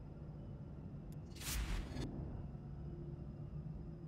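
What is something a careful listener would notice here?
A bright magical burst whooshes and shimmers.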